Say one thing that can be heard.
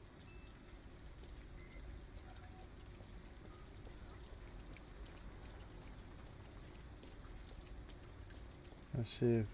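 Footsteps tap softly on wet pavement.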